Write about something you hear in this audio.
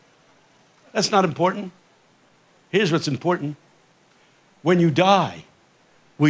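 An elderly man speaks with animation into a microphone, in short phrases with pauses.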